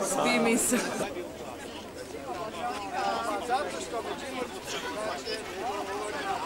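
A crowd of people chat outdoors while walking.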